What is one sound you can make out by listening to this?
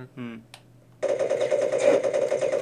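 A laser gun fires with a buzzing zap.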